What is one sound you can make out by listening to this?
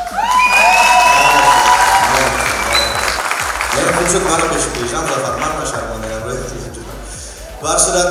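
A man speaks into a microphone on stage, his voice heard over loudspeakers in a large hall.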